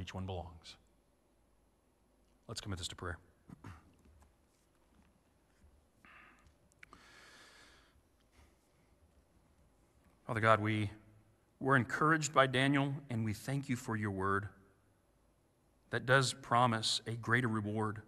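A young man speaks calmly through a microphone, with pauses.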